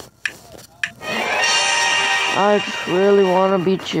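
A short cheerful chime plays as a puzzle is solved.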